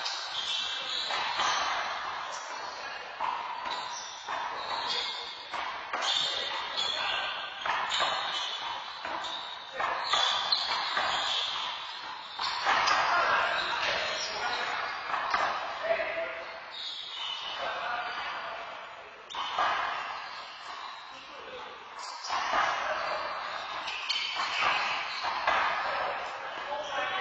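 Men shout and call out loudly in an echoing hall.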